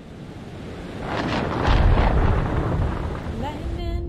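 Thunder crashes and rumbles loudly.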